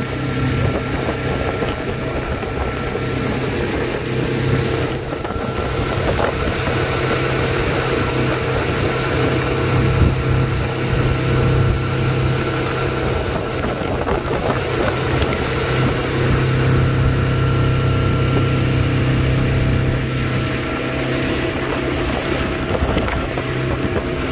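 Water churns and splashes in the boat's wake.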